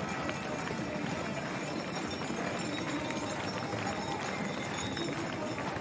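A crowd of spectators cheers and claps in the open air.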